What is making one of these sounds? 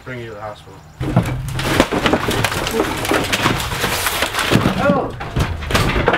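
Wooden panels crack and splinter as a hammer smashes them.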